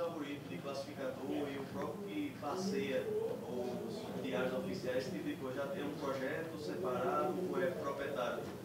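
A young man speaks steadily through a microphone.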